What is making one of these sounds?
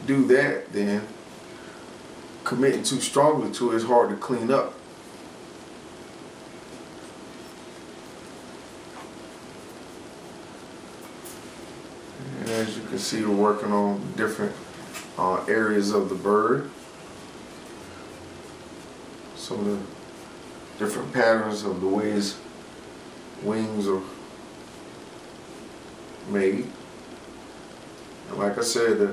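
A man talks calmly and close by, in bursts with pauses.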